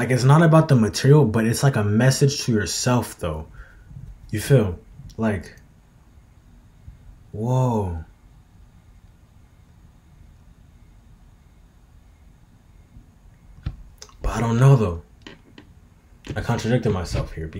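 A young man speaks with animation close to a microphone, with long pauses.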